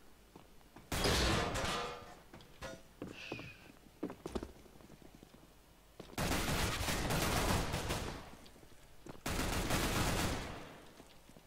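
Rifle shots fire in rapid, loud bursts close by.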